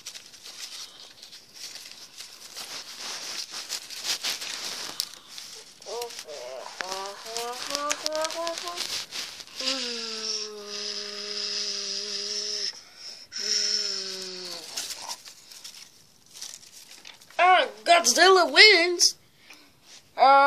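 Fabric rustles and crumples as hands handle it up close.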